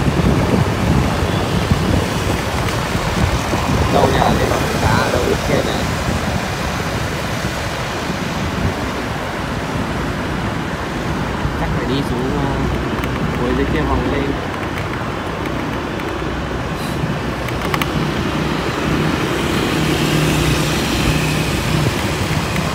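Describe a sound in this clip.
Motorbike engines hum as they pass nearby.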